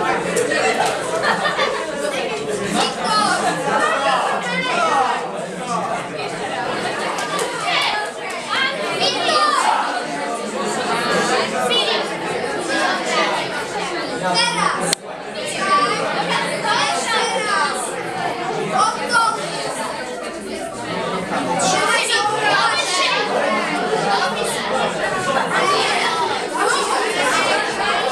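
Teenagers chatter and call out in a crowded room.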